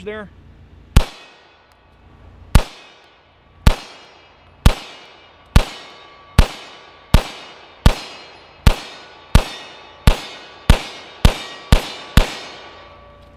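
A pistol fires loud shots one after another, ringing out among trees.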